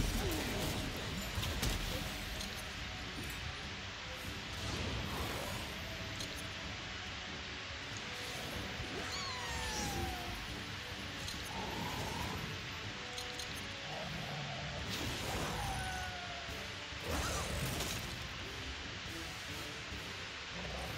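Magical spell effects whoosh and chime with short sliding tones.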